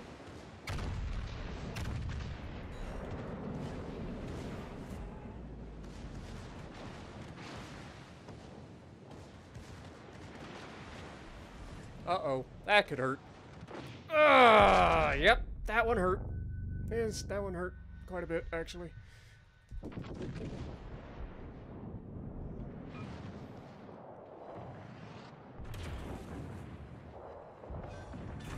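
Heavy ship guns fire with deep booming rumbles.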